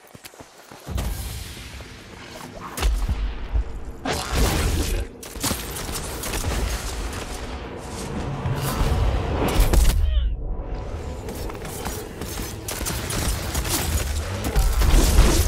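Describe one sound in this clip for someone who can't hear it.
Magic blasts and weapon hits crash loudly.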